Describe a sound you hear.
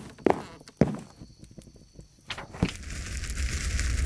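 A book opens with a rustle of pages.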